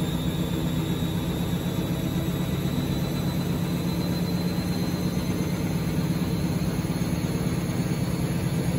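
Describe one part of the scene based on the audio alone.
A washing machine drum spins fast with a steady hum and rumble.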